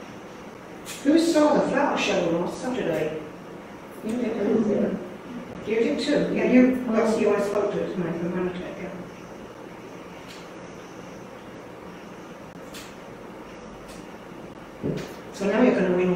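An older woman speaks calmly, close by.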